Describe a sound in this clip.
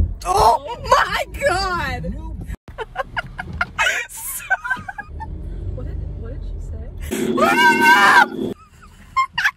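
A young woman shrieks and laughs excitedly close by.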